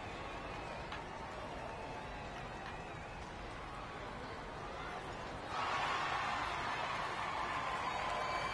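A crowd cheers in a large arena, growing louder.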